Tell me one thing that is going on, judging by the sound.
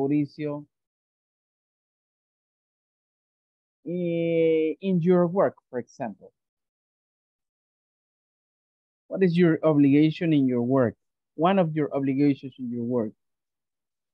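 A woman speaks calmly over an online call, in short bursts with pauses.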